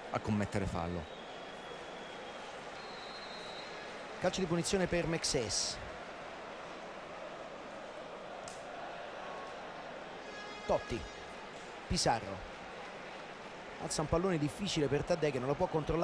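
A large stadium crowd murmurs and chants steadily outdoors.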